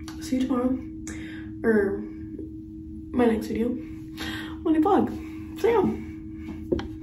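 A young woman speaks close by in short bursts.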